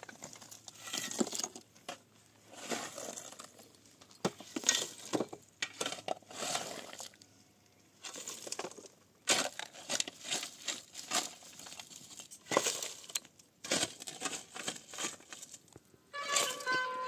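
A shovel scrapes and clatters through stones and rubble.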